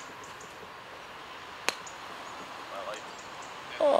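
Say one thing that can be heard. A golf club strikes sand with a dull thud.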